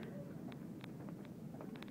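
Footsteps tap on a hard floor indoors.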